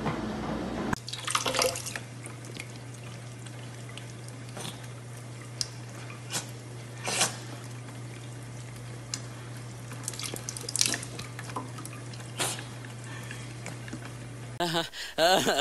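Water streams from a tap into a metal sink.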